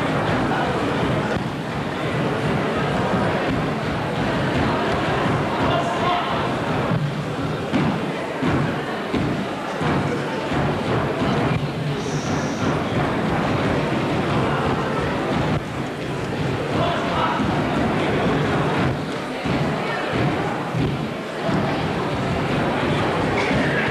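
Folk music plays on string instruments in a hall.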